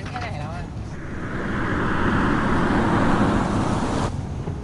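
A car approaches with a rising rush of engine and road noise.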